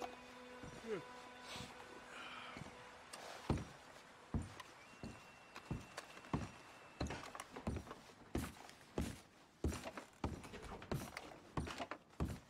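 Heavy footsteps thud on wooden floorboards.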